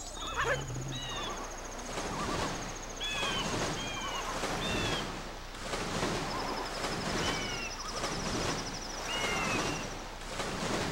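Water splashes and swishes as a swimmer paddles steadily.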